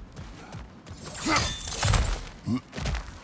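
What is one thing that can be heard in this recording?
A chain whips through the air with a loud whoosh.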